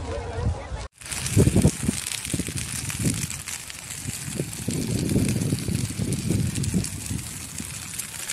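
Wind buffets a phone's microphone outdoors.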